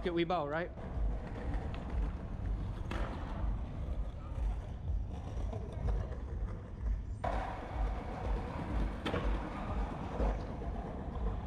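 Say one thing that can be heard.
Skateboard wheels roll and rumble on paving stones.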